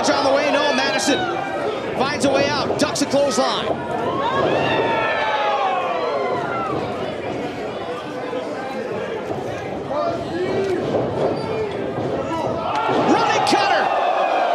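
Bodies thud onto a wrestling mat.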